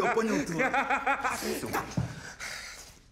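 A man groans and strains loudly, close by.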